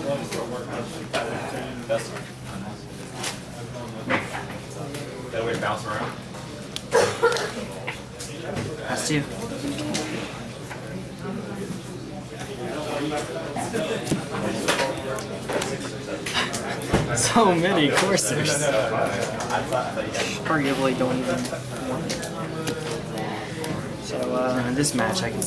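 Playing cards slide and tap softly on a tabletop mat.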